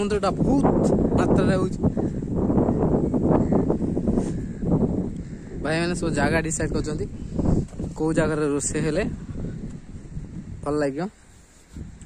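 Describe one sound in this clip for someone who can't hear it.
Wind blows hard and rumbles outdoors.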